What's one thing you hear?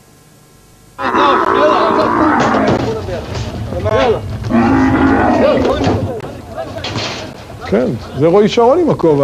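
Several men shout and call out with effort outdoors.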